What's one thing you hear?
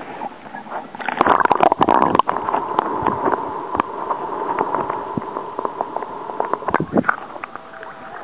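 Water gurgles and bubbles, heard from underwater.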